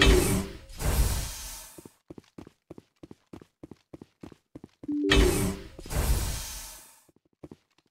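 A sliding door hisses open.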